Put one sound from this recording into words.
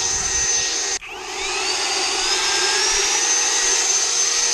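A leaf blower cuts out briefly and whines back up to speed.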